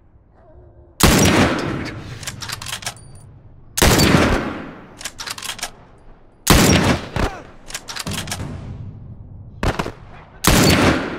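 A rifle fires loud shots that echo away outdoors.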